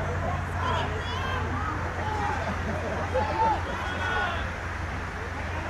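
Young women shout and call to each other across an open field, heard from a distance.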